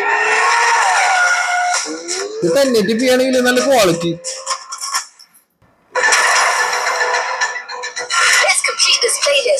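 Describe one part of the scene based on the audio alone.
A racing game's car engine revs and roars from a small speaker.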